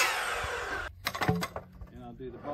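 A wooden board knocks against the saw.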